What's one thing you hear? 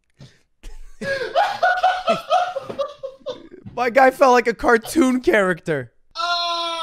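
Another young man chuckles and speaks close to a microphone.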